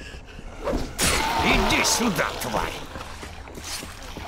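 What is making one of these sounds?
A blade slashes into flesh with wet, heavy thuds.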